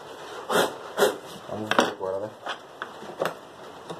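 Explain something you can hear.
A chisel is set down on a board with a knock.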